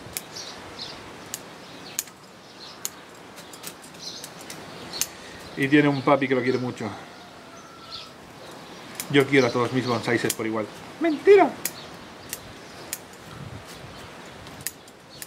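Small scissors snip sharply at leaves.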